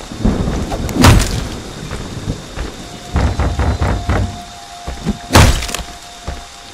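An axe strikes a wooden door with loud, cracking blows.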